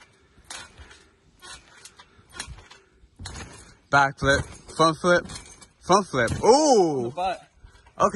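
A trampoline mat thumps under bouncing feet.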